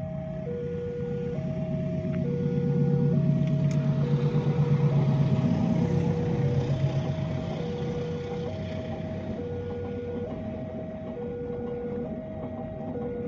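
A level crossing bell rings steadily with a two-tone chime.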